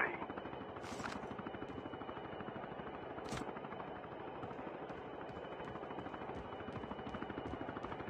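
Footsteps run quickly over a hard surface.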